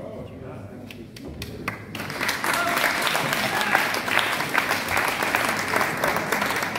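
An audience applauds, starting with a few claps and swelling into steady clapping.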